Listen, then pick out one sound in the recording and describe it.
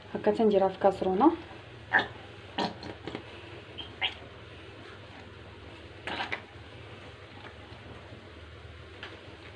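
Powder pours softly into a pot.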